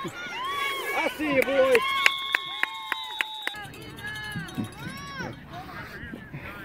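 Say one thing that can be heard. Young players shout and cheer outdoors.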